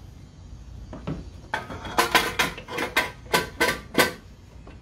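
A metal cover clanks and knocks sharply several times as it is fitted into place.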